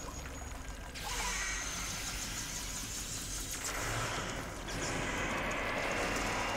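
A loud game burst booms and fizzes.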